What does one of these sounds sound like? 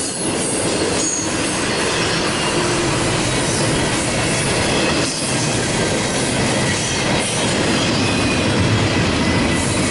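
Train wheels squeal and screech against the rails.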